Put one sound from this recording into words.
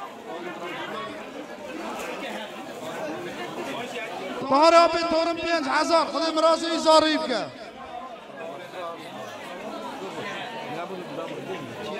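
A man speaks loudly through a microphone and loudspeaker.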